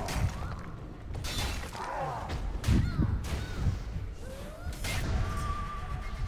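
Blades clash and strike with sharp impacts in a fight.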